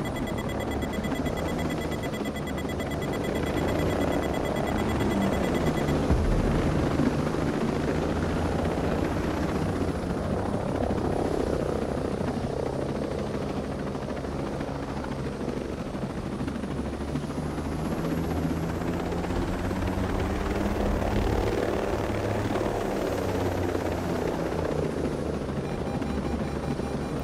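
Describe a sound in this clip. A helicopter's rotor thumps and its engine roars steadily close by.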